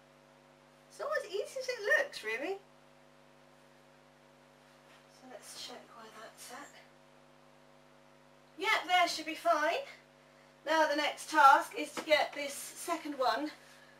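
A young woman talks calmly and close by, in bursts with pauses.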